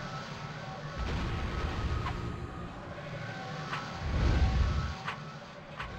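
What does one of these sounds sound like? Magic spells burst and whoosh in a fight.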